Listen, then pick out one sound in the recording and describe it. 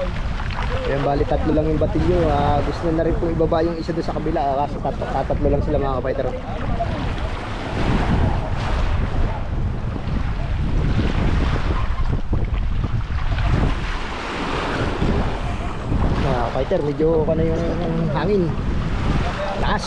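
Men shout and call to each other outdoors.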